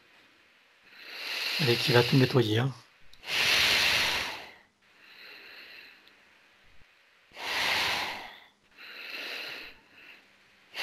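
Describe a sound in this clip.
A man laughs softly over an online call.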